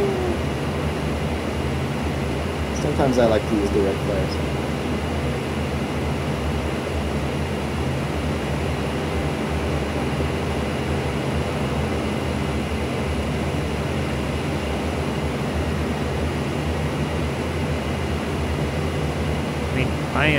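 An aircraft engine drones steadily and loudly.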